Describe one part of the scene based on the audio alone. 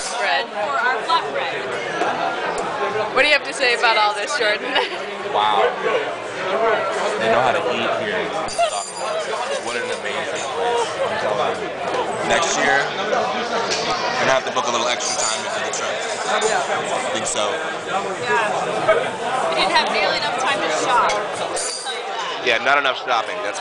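A crowd of diners murmurs in the background.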